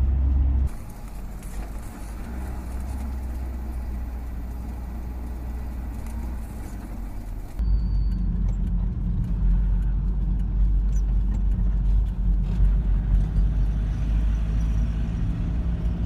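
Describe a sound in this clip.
A van engine hums from inside the cab while driving along a road.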